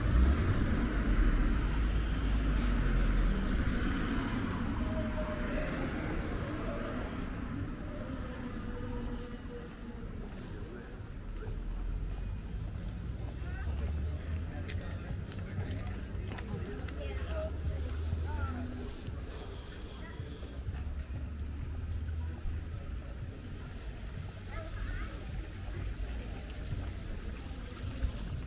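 Traffic rumbles along a street nearby.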